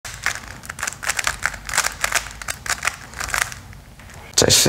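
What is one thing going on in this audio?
A puzzle cube clicks and clacks as fingers twist it quickly.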